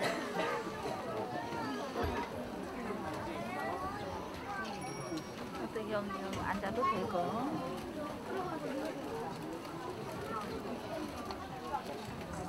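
Several adults, men and women, talk at once nearby in a hall with some echo.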